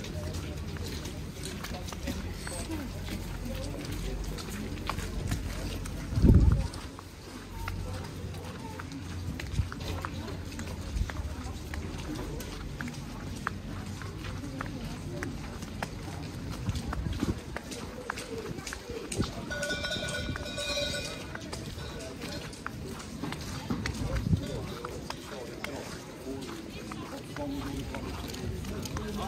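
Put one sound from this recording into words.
Footsteps crunch and scrape on slushy snow.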